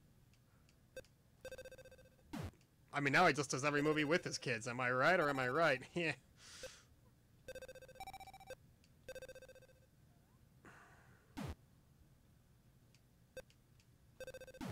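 Short electronic bleeps sound from a video game as a ball bounces.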